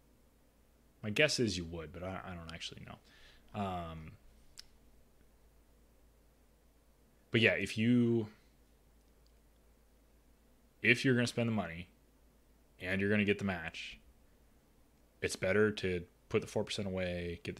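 A young man speaks calmly and closely into a microphone, with pauses.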